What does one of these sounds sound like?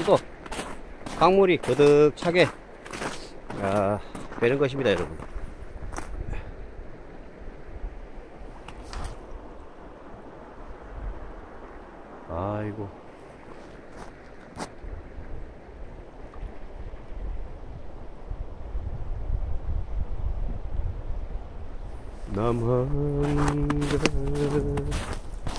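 Shallow river water trickles gently over stones.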